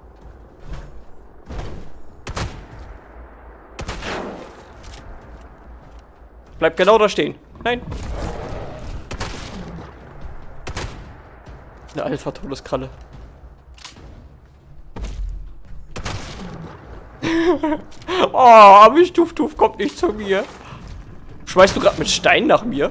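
Gunshots fire in bursts.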